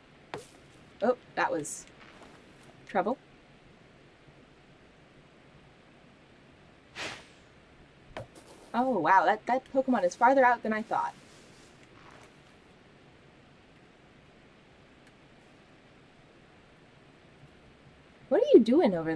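A young woman talks calmly and close into a microphone.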